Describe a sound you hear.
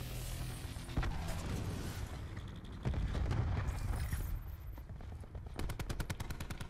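Rifle shots crack sharply a few times.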